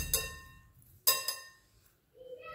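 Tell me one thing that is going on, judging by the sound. A metal whisk clinks against a glass bowl.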